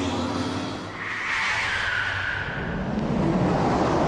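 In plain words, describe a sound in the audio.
A police siren wails.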